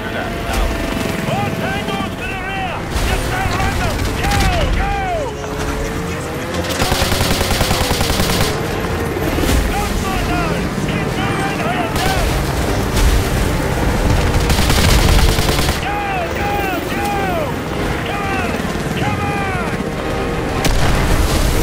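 A snowmobile engine drones steadily.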